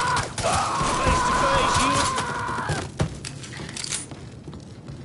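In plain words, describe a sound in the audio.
Bullets strike wood with sharp cracks.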